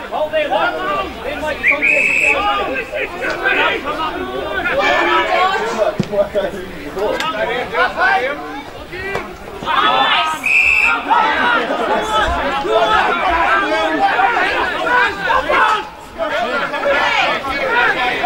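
A crowd of men and women cheer and shout nearby, outdoors.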